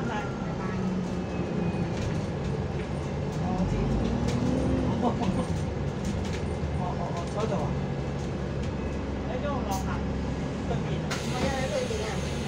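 A bus engine hums steadily inside the cabin.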